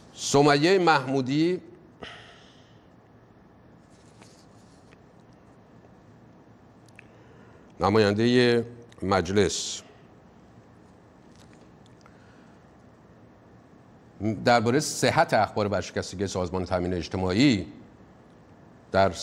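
A middle-aged man reads out calmly into a microphone, with long pauses between phrases.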